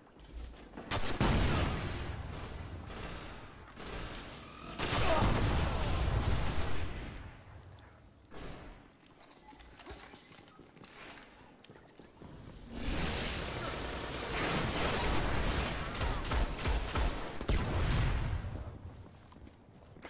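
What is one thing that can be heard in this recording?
Large explosions boom and roar.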